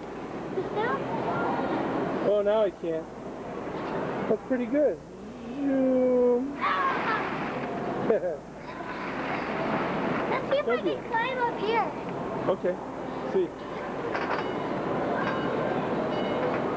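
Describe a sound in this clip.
Children shout and play in a noisy echoing hall.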